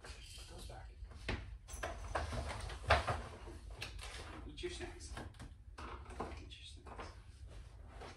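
A man rummages through a cabinet, with items clattering.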